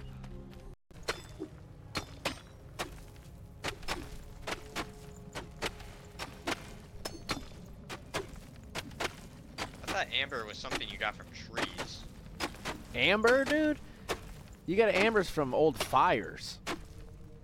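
A pickaxe chips repeatedly at rock.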